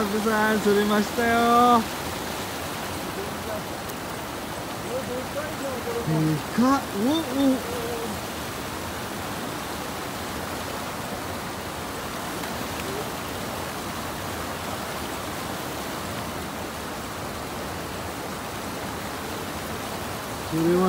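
A shallow river flows over stones.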